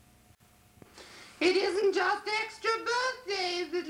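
A woman sings with a wavering voice.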